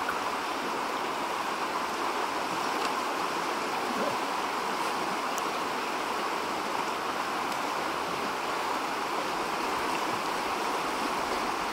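A bear splashes as it wades through the water.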